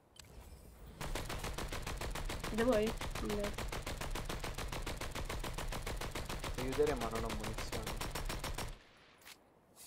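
Rapid gunfire rattles steadily in a fast stream.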